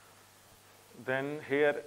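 A man speaks loudly and clearly, close by.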